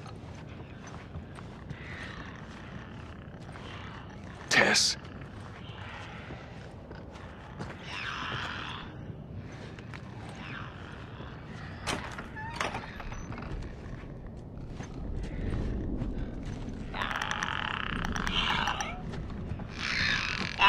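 Footsteps crunch softly over debris and broken glass.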